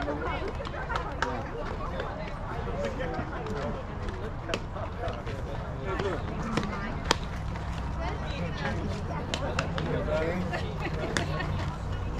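Men and women chatter and call out nearby, outdoors.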